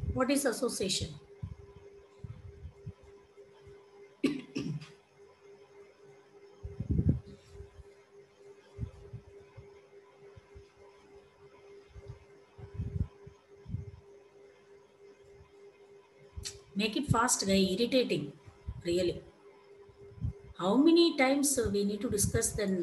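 A young woman speaks calmly into a headset microphone, with pauses.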